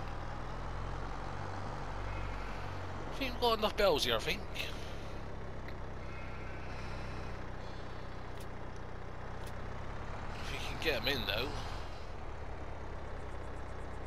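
A tractor engine hums steadily at idle.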